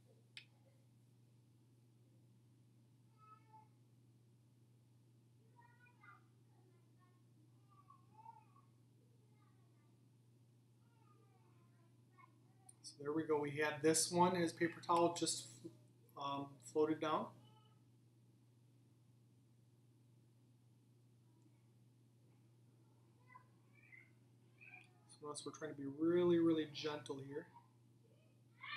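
Water splashes softly in a bowl.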